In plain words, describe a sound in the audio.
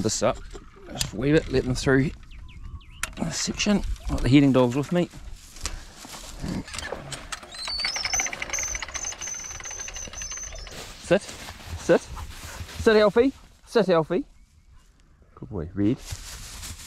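A man talks casually nearby, outdoors.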